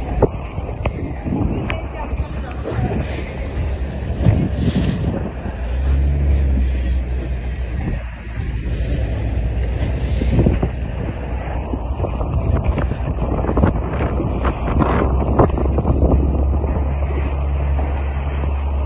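Wind buffets loudly in the open air.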